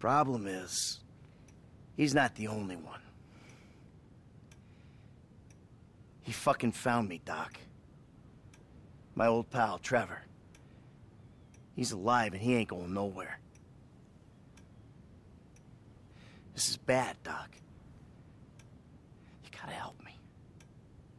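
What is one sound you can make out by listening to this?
A middle-aged man speaks in a calm, low voice.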